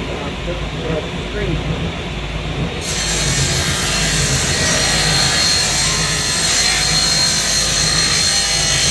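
A table saw hums steadily.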